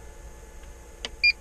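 A button clicks on a computer case.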